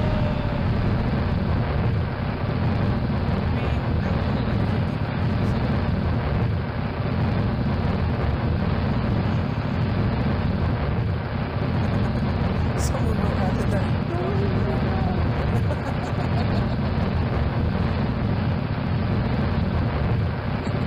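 Rocket engines roar with a steady, heavy rumble.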